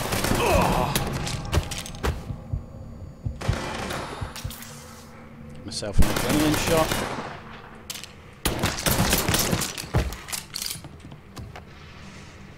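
Gunshots crack repeatedly with sharp echoes.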